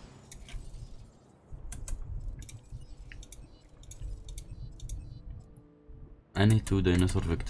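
Short electronic clicks and blips sound as menu options are selected.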